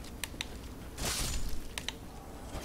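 A sword swooshes through the air.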